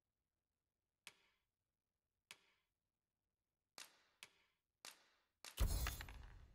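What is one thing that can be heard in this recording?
Short, soft menu clicks sound as the selection changes.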